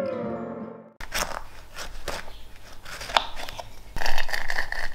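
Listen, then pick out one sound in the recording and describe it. A knife cuts through a lemon on a wooden board.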